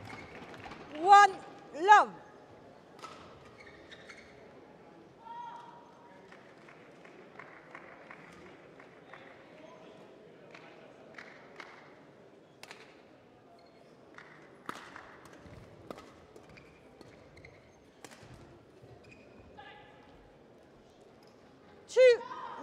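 Shoes squeak sharply on a hard court floor.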